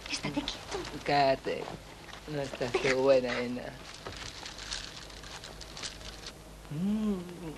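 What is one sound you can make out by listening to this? A young man speaks with feeling close by.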